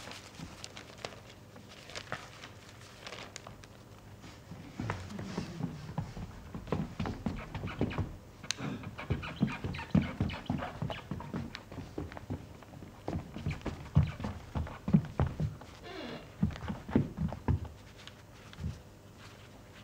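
A newspaper rustles and crackles in a man's hands.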